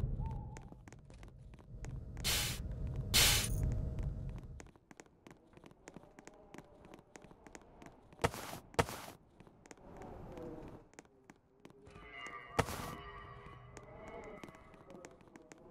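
Quick footsteps patter as a game character runs.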